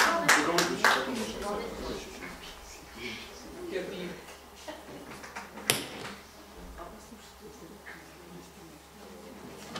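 A middle-aged man talks quietly, some distance away.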